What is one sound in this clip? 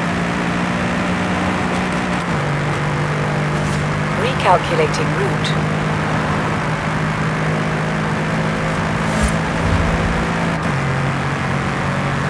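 A sports car engine roars steadily at high speed, shifting gears.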